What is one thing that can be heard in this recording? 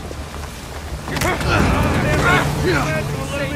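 Two men scuffle and grapple with thuds of blows.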